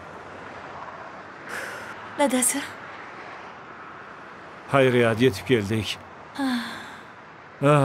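A man talks nearby in a calm voice.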